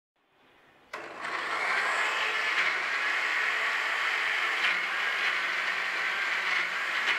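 A blender motor whirs loudly and steadily.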